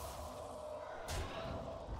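A sharp game impact effect sounds.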